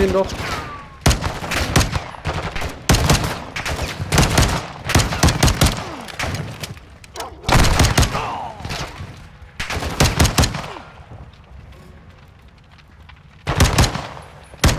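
Gunshots crack in rapid bursts and echo.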